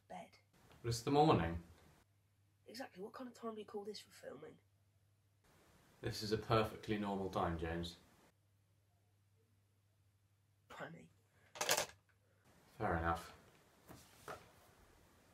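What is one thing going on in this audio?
A teenage boy talks casually into a phone, close by.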